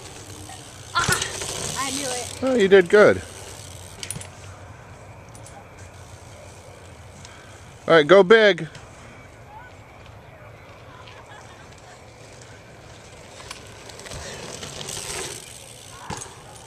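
Bicycle tyres roll and crunch over a dirt track.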